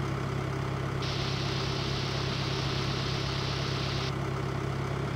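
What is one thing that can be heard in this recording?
Grain pours with a steady hiss.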